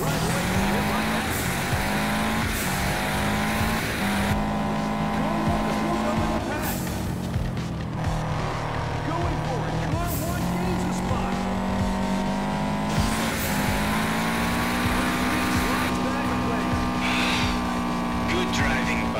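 A racing car engine roars at high revs, rising in pitch through each gear and dropping at every shift.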